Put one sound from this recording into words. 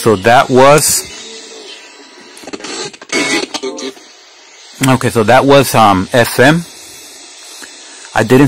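Radio static hisses softly while the dial is tuned.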